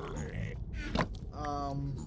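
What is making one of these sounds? A pickaxe chips at stone blocks.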